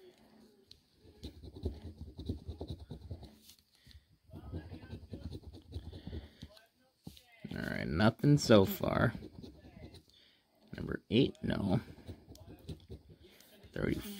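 A coin scratches rapidly across a card in short bursts.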